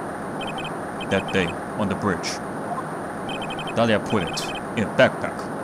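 Short electronic blips tick rapidly in quick bursts.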